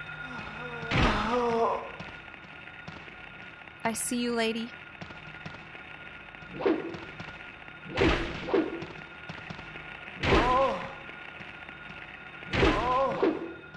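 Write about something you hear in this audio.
A metal pipe strikes a body with heavy thuds.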